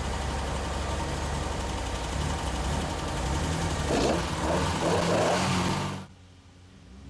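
A rally car engine idles and revs loudly nearby.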